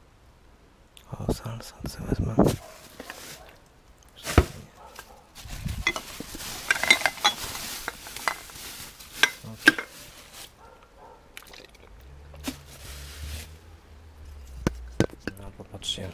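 Glass jars clink and knock against each other.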